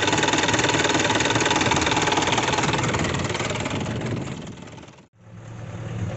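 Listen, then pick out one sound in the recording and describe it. A diesel engine idles loudly up close.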